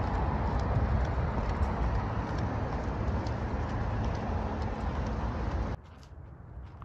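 Strong wind rumbles against the microphone outdoors.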